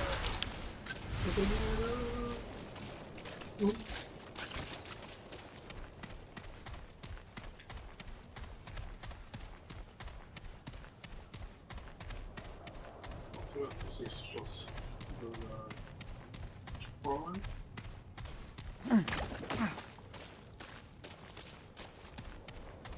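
Footsteps crunch quickly on rough ground.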